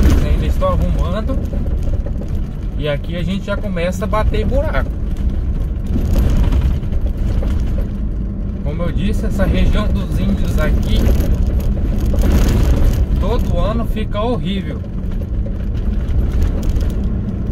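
A car engine rumbles steadily inside the car.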